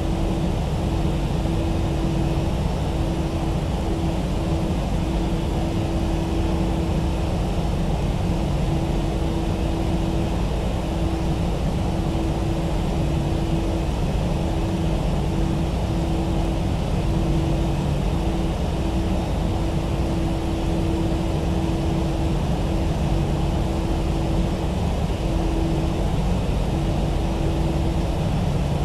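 A jet engine hums steadily as an airliner taxis.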